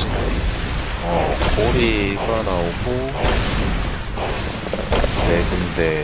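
A giant worm creature rumbles up out of a pit.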